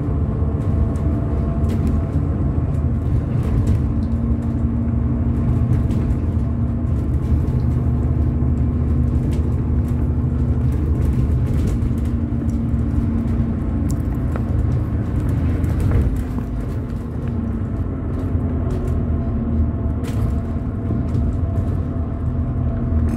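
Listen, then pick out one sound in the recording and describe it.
A diesel double-decker bus engine drones as it drives along, heard from inside.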